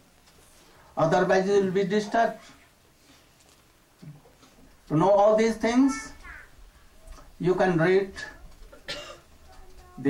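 An elderly man speaks calmly into a microphone in short phrases with pauses.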